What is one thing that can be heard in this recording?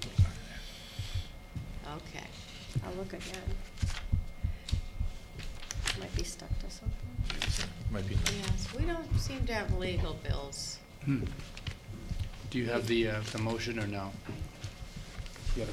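Papers rustle and shuffle close to a microphone.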